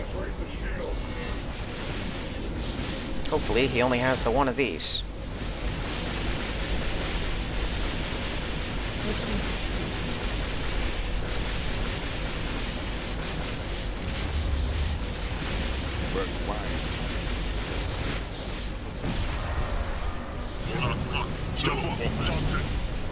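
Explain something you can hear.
Spaceship weapons fire laser blasts in a battle.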